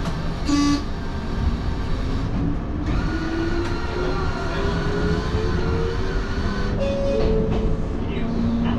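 A train's motor whines and slowly rises in pitch.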